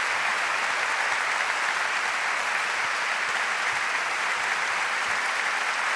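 A large crowd applauds loudly in an echoing hall.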